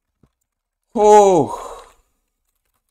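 A young man exclaims loudly with a rising and falling cry.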